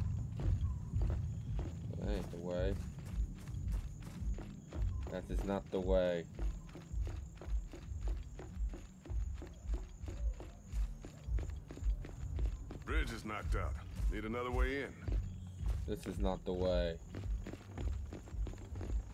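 Heavy armored boots thump steadily on hard ground.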